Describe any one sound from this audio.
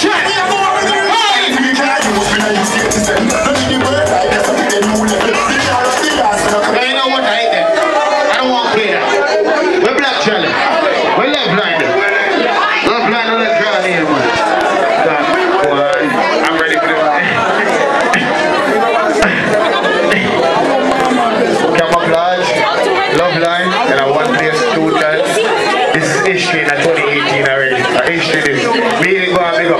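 A crowd of young men and women chatter and shout in a noisy room.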